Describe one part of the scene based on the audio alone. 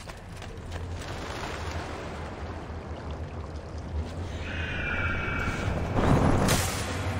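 Air rushes past in a long fall.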